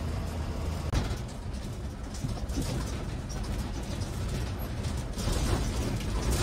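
A bus engine idles and rumbles while the bus rolls slowly to a stop.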